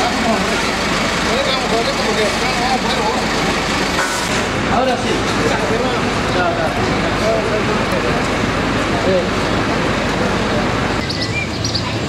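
People chatter nearby outdoors.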